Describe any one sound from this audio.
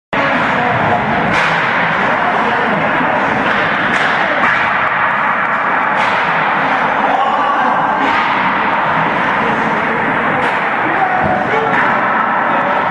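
Skate blades scrape across ice.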